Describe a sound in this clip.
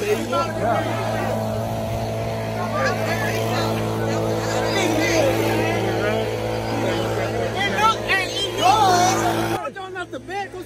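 A crowd of people talks and shouts outdoors.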